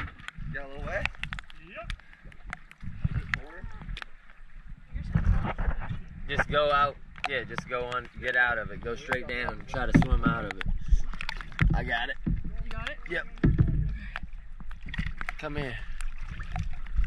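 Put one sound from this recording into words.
A young woman talks calmly from the water, close by.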